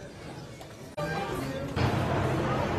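A crowd murmurs nearby.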